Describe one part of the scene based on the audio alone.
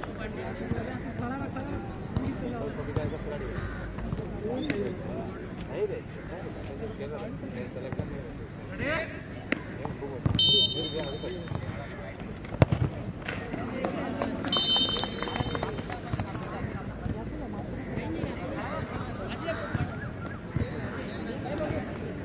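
A crowd of men chatters and calls out nearby, outdoors.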